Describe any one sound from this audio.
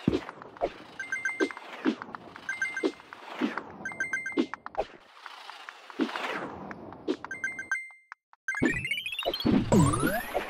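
Coins jingle in quick bright chimes as they are picked up.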